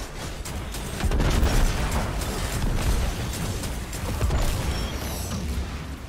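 Energy blasts boom and crackle.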